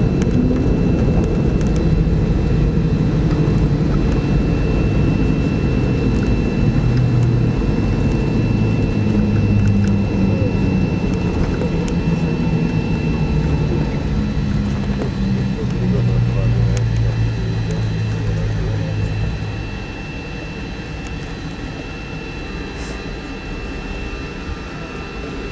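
Tyres rumble on the road surface.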